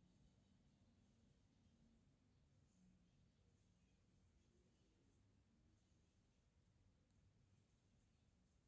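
Yarn rustles softly as a crochet hook pulls it through loops.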